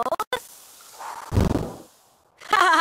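A cork pops out of a bottle.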